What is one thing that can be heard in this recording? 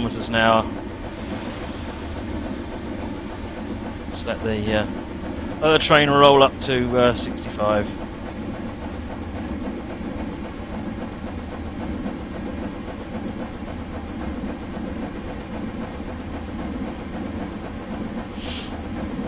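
A steam locomotive chugs steadily along the rails.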